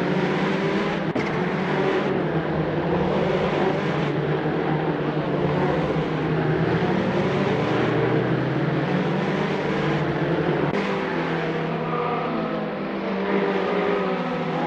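Several racing car engines roar and whine as they shift through the gears.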